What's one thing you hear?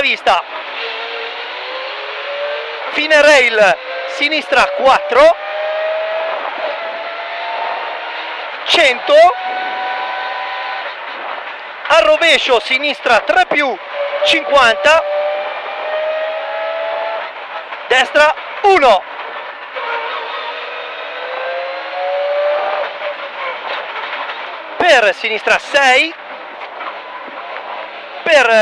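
A rally car engine roars and revs up and down through the gears.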